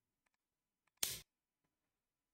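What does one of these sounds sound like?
A shogi piece clicks down onto a wooden board.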